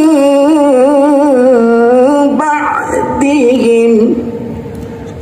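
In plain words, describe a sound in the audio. A young man chants a Quran recitation in a long, wavering melody through a microphone and loudspeakers.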